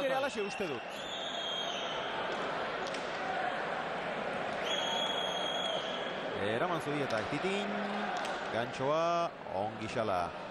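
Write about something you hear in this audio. A ball smacks sharply against a wall, echoing in a large hall.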